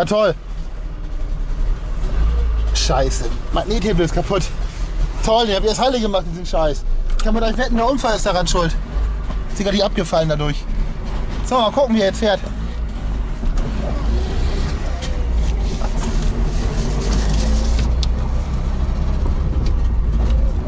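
A car engine rumbles steadily as the car drives.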